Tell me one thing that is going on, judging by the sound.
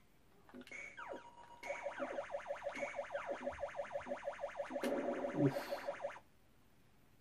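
An arcade game's flying saucer warbles in a fast, steady wobble.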